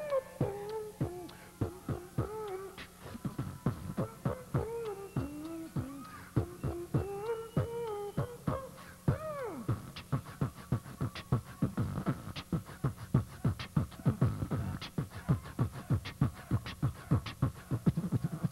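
A man beatboxes into a microphone, heard through loudspeakers.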